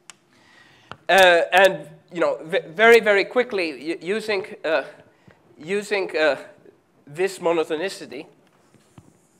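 A man speaks clearly and steadily, as if lecturing.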